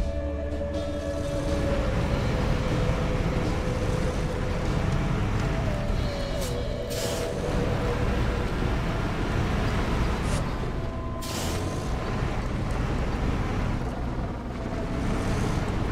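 Tyres crunch through snow.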